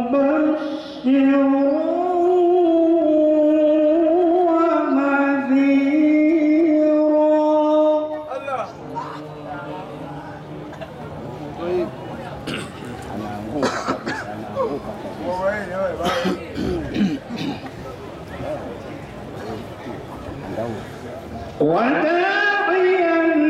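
A man chants loudly in a long, wavering melody through a microphone and loudspeaker.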